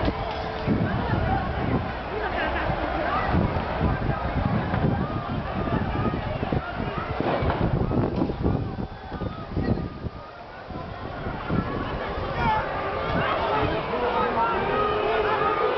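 A crowd of people shouts and chants outdoors.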